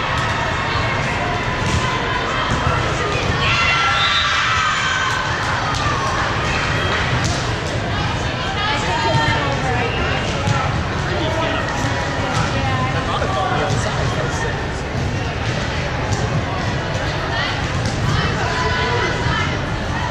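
A crowd chatters and calls out, echoing through a large gymnasium.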